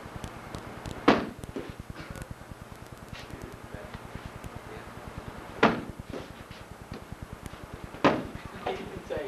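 Kicks thud loudly against a padded shield.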